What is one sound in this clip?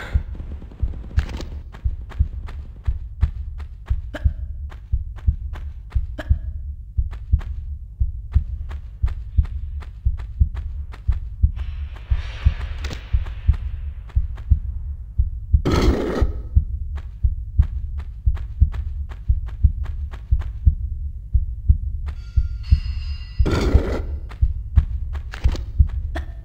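Quick footsteps run steadily on a hard floor.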